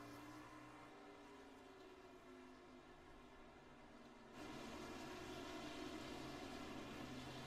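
A racing truck engine roars steadily, growing louder partway through.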